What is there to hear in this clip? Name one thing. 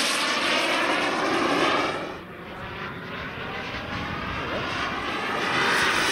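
A small model plane engine buzzes overhead, its pitch rising and falling as it passes.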